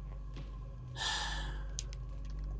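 Loose papers rustle underfoot.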